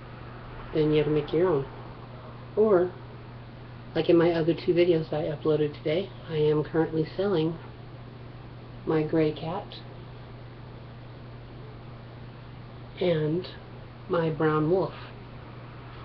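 A woman talks animatedly close to a microphone, in short bursts with pauses.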